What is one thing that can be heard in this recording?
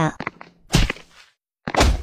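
A blade strikes with a sharp hit.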